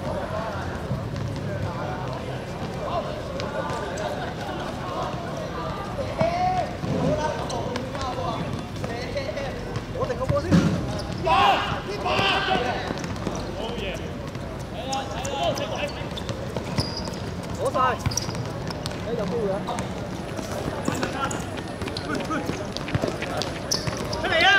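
Young men shout and call to each other outdoors during a football game.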